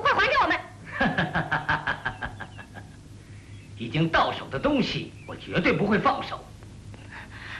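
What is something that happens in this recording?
A young man speaks with a mocking tone close by.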